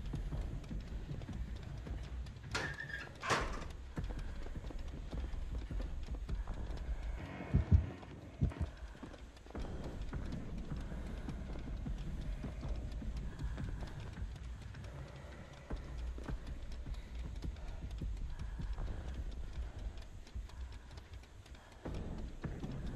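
Footsteps shuffle softly on creaking wooden boards.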